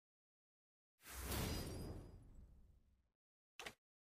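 A triumphant game fanfare blares.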